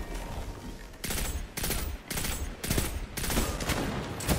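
A rifle fires in quick bursts in a video game.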